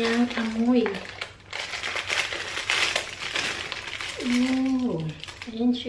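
A plastic wrapper crinkles and rustles as it is opened.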